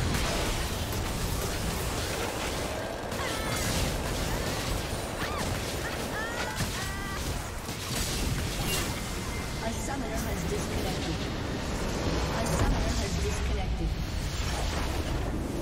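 Magical spells whoosh, zap and crackle in a busy battle.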